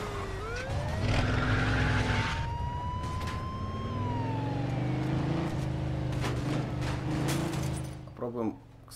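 A car engine revs steadily as the car drives off.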